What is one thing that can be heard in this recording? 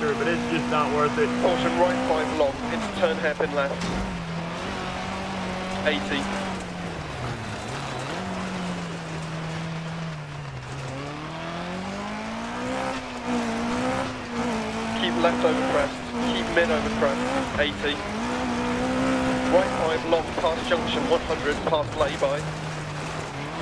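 A rally car engine roars, revving up and down as gears change.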